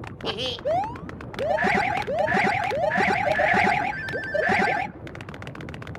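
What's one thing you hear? Cartoonish springy jump sounds boing up in quick bursts.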